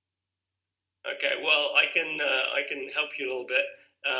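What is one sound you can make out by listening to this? A young man speaks calmly and close up.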